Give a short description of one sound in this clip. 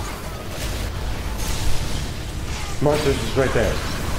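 An energy weapon fires with a roaring blast.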